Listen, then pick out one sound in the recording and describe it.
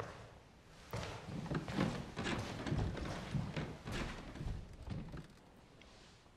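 A young woman speaks calmly, heard through a speaker.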